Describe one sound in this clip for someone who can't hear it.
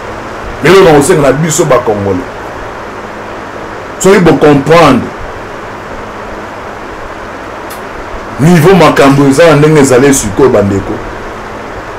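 A man speaks with animation in short bursts, close to a microphone.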